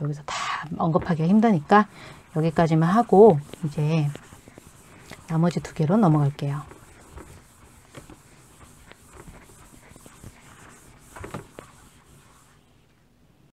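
A felt eraser rubs across a chalkboard.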